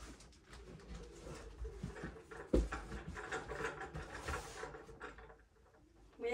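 Things rustle and knock in a storage bin.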